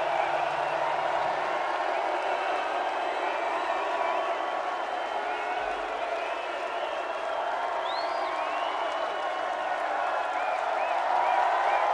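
A large crowd cheers and roars loudly outdoors.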